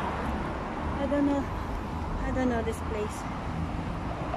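A woman speaks briefly close by.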